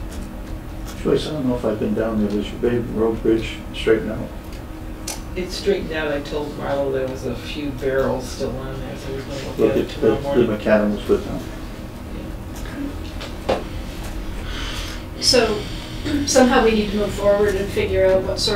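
A middle-aged man speaks calmly into a microphone in a room with some echo.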